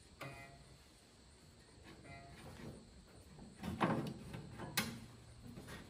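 Metal parts clink as hands work on a tractor's alternator.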